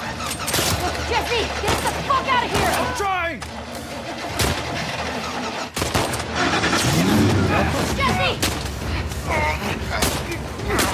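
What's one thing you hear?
A young woman shouts urgently.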